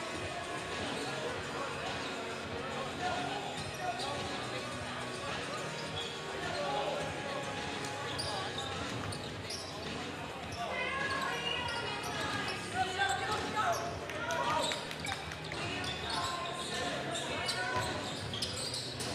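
A basketball bounces on the wooden floor.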